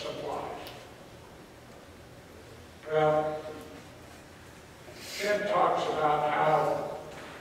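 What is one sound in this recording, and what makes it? A middle-aged man speaks calmly in short bursts, with pauses in between.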